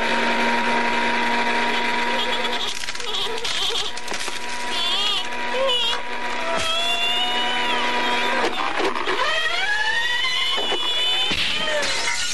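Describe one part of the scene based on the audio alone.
A woman screams.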